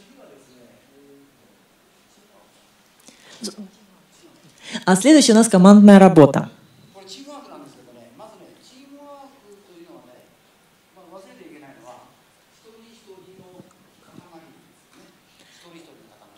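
A woman speaks calmly into a microphone over loudspeakers in a large room.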